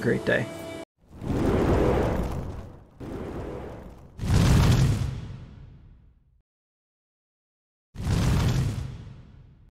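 Flames whoosh and roar in short bursts.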